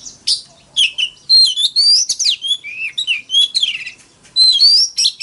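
A songbird sings loud, varied, whistling phrases close by.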